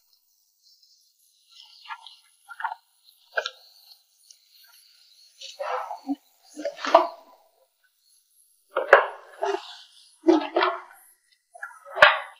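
Paper pages rustle as they are leafed through.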